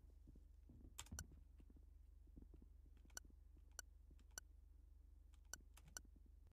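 Short electronic beeps chime at uneven intervals.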